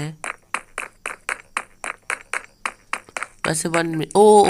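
Footsteps tap quickly and evenly on stone.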